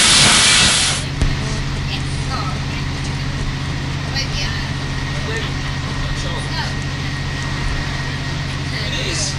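Passengers chat quietly.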